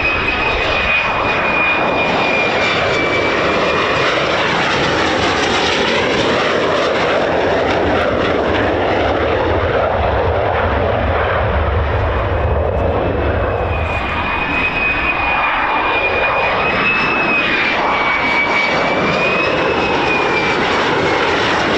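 A jet engine roars loudly and steadily, with a piercing whine that wavers in pitch.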